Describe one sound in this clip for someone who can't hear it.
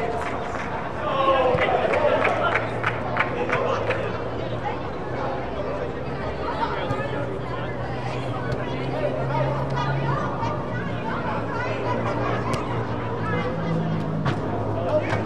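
Young players shout and call out across a large echoing hall.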